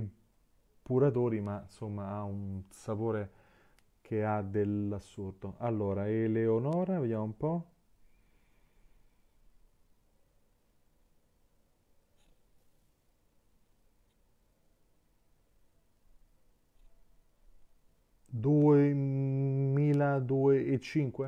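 A man talks calmly and close by, with pauses.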